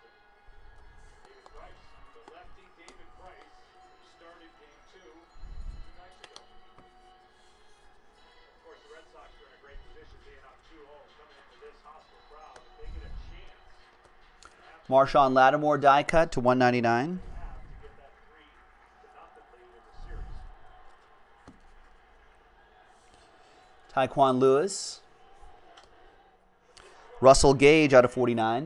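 Trading cards slide and rustle between fingers.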